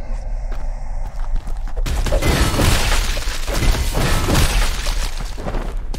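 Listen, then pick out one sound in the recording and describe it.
Fists strike a creature with heavy, dull thuds.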